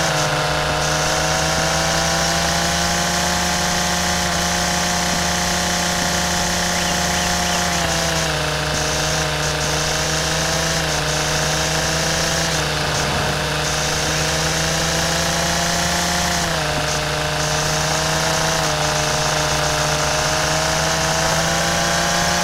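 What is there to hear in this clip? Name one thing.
A string trimmer line swishes through tall grass.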